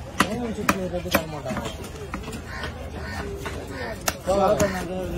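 A heavy knife chops into a wooden block with sharp knocks.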